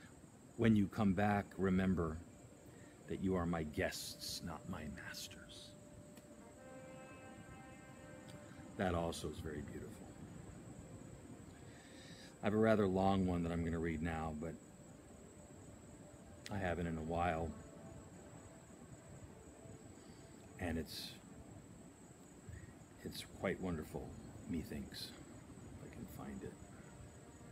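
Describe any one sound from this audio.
A middle-aged man talks close by in short bursts with pauses.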